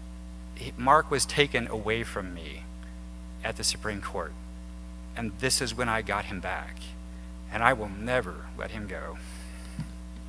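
A man speaks with animation into a microphone in a large hall.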